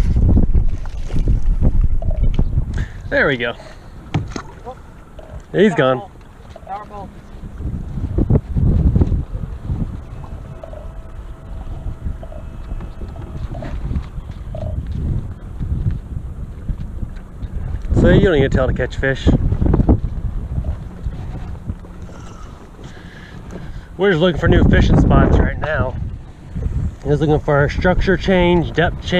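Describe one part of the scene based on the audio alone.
Wind gusts across open water.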